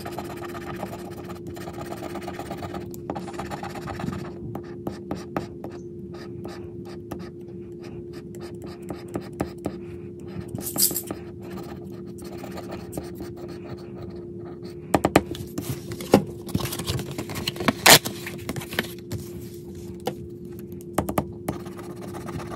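A plastic scraper scratches quickly across a scratch card.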